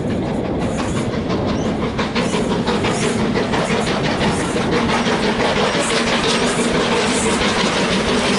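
A steam locomotive chuffs rapidly as it approaches.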